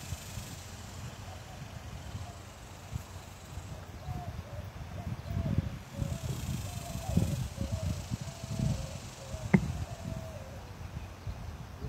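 A man chants softly in the distance.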